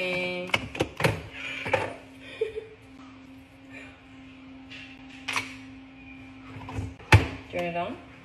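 Plastic parts of a coffee machine click and knock.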